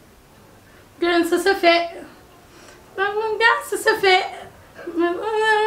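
A young woman sings loudly nearby, in short bursts.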